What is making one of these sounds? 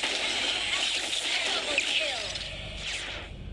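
Magic spell effects whoosh and crackle in a game.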